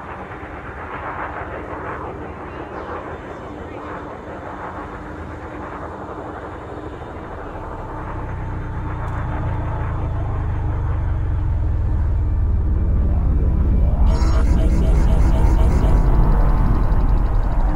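A spaceship engine hums low and grows louder into a deep rumble.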